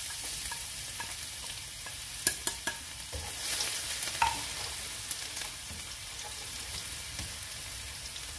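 A spatula scrapes and taps against a metal pan.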